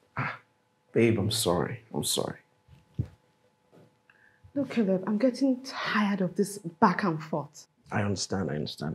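A woman speaks sharply and with annoyance, close by.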